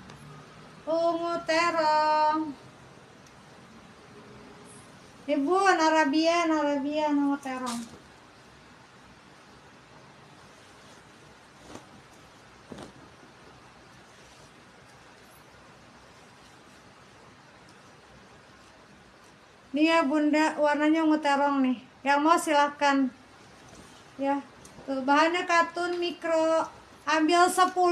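A woman speaks with animation close to the microphone.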